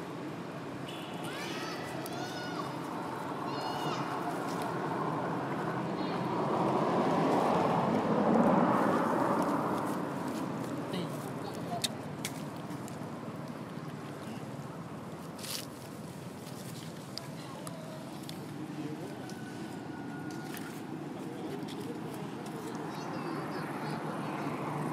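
A young monkey gives high, short squeaks.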